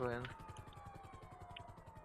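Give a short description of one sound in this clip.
A helicopter whirs overhead.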